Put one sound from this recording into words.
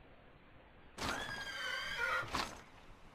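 A horse neighs loudly.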